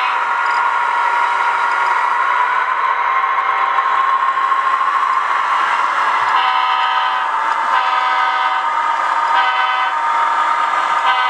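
A model train whirs and rattles steadily along its track.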